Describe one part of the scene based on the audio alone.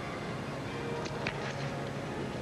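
A gymnast's hands clack against a wooden bar.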